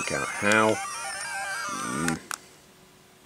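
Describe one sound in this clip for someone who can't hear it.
Electronic game sound effects beep and warble from a small speaker.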